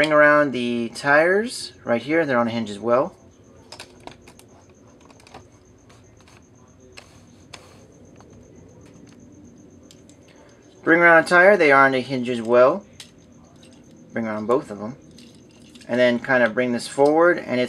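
Plastic parts click softly as a toy figure is twisted.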